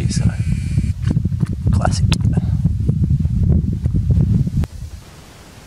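Wind gusts strongly across open ground, rumbling against the microphone.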